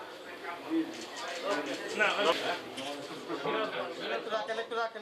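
A man speaks steadily and clearly.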